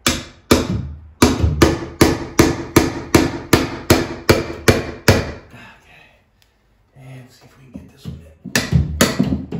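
A hammer bangs rapidly against a ceiling overhead.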